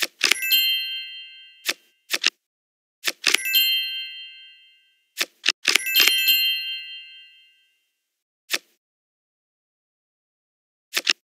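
Playing cards snap into place with short clicks in a computer card game.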